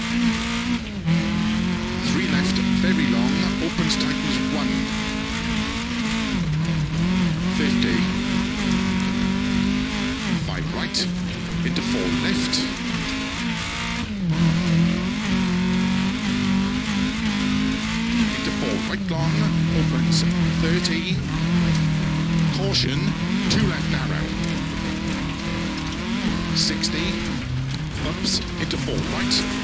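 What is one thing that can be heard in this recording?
A rally car engine roars at high revs, dropping briefly with each gear change.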